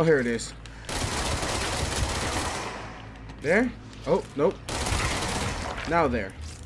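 A gun fires a loud burst of shots.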